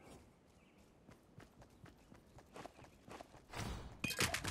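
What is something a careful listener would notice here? Quick footsteps patter on hard pavement.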